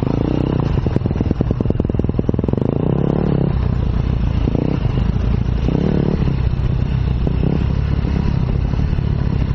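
A dirt bike engine roars close by, revving up and down.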